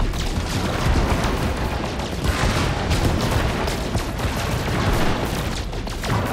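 Laser beams fire with a buzzing hum.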